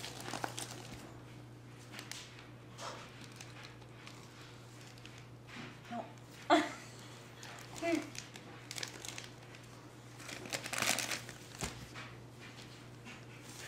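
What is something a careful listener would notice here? Wrapping paper crinkles and rustles as a baby tears at it.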